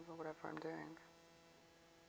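A young person speaks briefly and calmly, close to a microphone.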